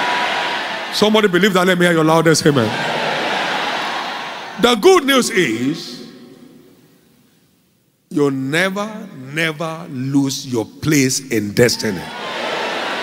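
A man preaches forcefully through loudspeakers in a large echoing hall.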